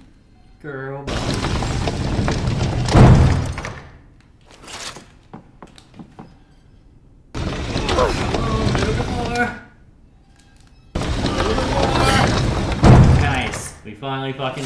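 A heavy wooden bookshelf grinds and rumbles as it slides.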